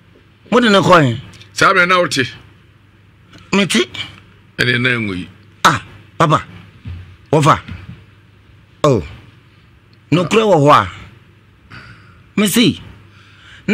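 A man speaks forcefully and with animation into a close microphone, in short bursts with pauses.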